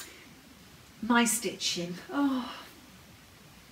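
A woman speaks calmly and warmly, close to a microphone.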